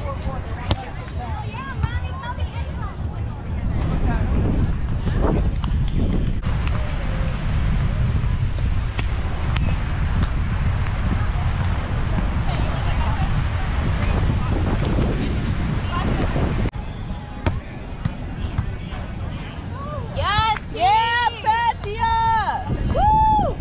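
A volleyball is struck with dull thumps.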